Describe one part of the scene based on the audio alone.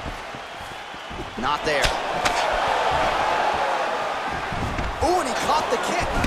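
Punches land with sharp thuds.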